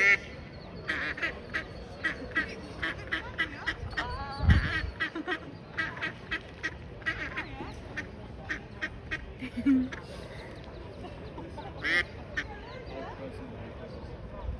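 Ducklings peep in quick, high chirps close by.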